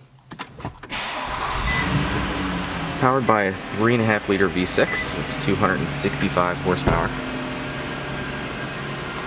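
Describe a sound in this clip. A car engine starts and idles steadily.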